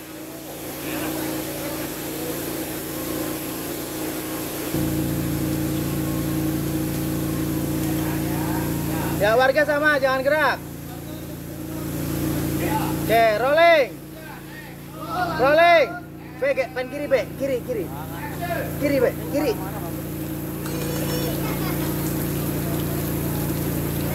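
Water sprays steadily from a hose.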